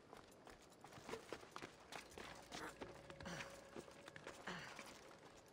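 Hands and boots scrape and knock against rock as someone climbs.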